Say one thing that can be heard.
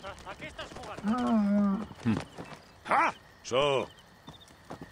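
A camel groans loudly.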